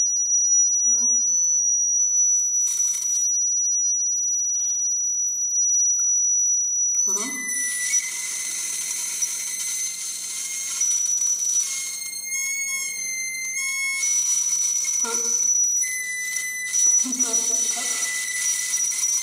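A woman plays a wind instrument in short phrases.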